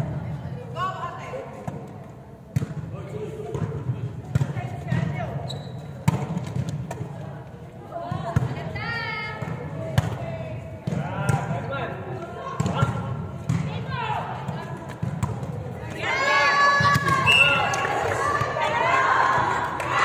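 Women and girls shout and call out to each other in a large echoing hall.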